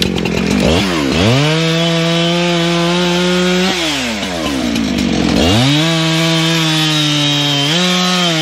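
A chainsaw cuts through a log.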